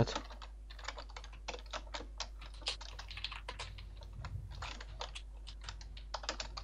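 Leaves crunch and rustle in quick, repeated bursts as they are chopped.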